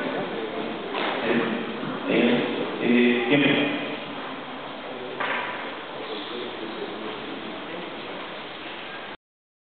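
A crowd murmurs in a large hall.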